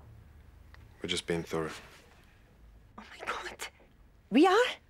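A woman speaks in shock, close by.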